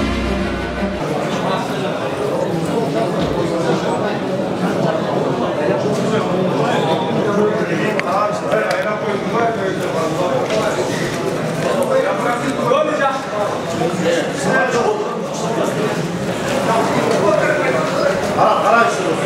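A crowd of men and women chatters and shouts in a large echoing hall.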